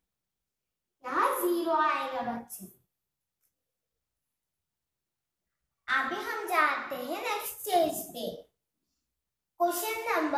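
A young girl speaks clearly and carefully, close by, as if teaching.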